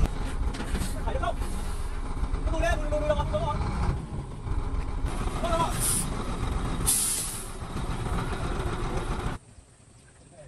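A truck engine rumbles at idle outdoors.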